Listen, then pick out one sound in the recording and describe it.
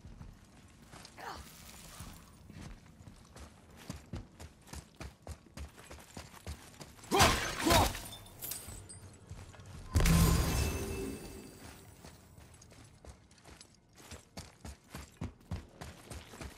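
Heavy footsteps thud steadily on hard ground.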